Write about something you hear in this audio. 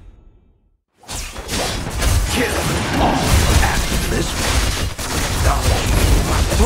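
Loud blasts, clashes and gunshots of a fast game battle roar on.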